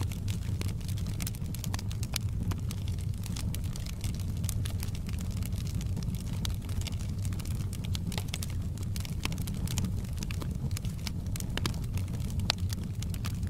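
A fire roars with a low steady rumble.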